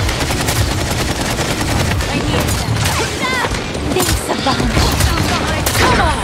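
Rapid laser gunfire crackles in quick bursts.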